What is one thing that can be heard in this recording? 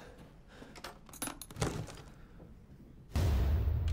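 A metal case's lid clicks open.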